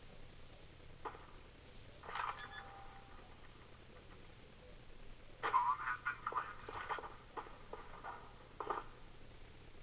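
Video game gunshots fire in short, sharp bursts.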